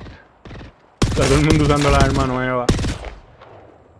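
Rapid gunfire rings out loudly.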